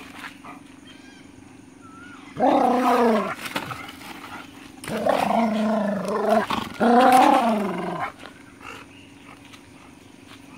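A dry palm frond scrapes and rustles over dirt ground.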